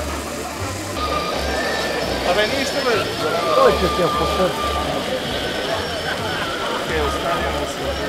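Sparkler candles fizz and crackle.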